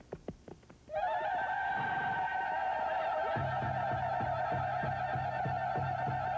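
A young woman sings out joyfully.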